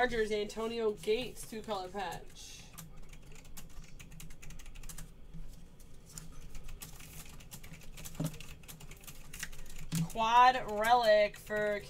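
Cardboard card boxes rustle and tap as they are handled.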